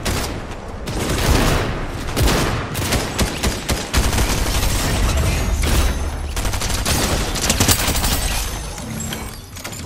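Gunshots fire rapidly in a video game.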